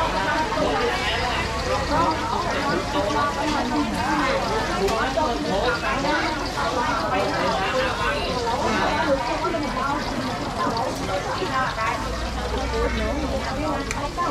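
A young woman talks close by, calmly.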